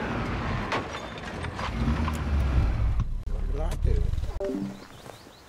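A car engine rumbles low and steady, then cuts off.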